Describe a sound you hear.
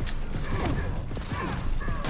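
A beam weapon fires with a sharp zapping sound.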